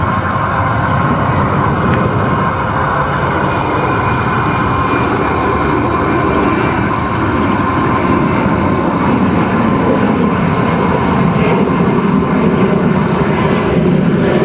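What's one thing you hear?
A wet net rustles as it is hauled in by hand.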